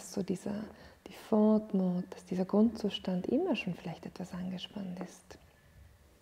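A woman speaks calmly and softly.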